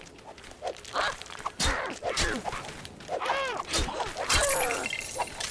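Game blows thump and clatter as a figure is struck.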